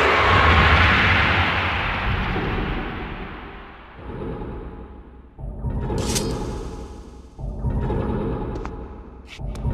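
A heavy stone door grinds and rumbles as it turns.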